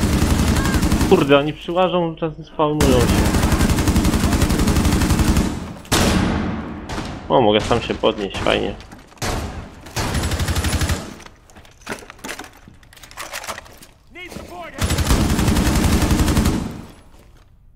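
An automatic rifle fires rapid bursts of loud shots.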